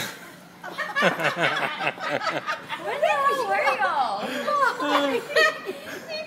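A young woman laughs and squeals excitedly close by.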